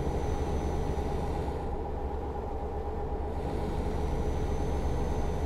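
A truck engine hums steadily as it drives along.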